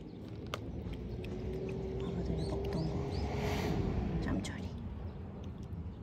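A cat crunches dry food up close.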